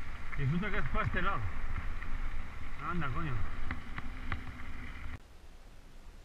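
Bicycle tyres crunch over gravel.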